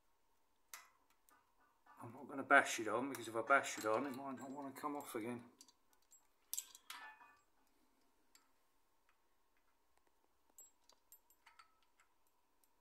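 Small metal parts click together.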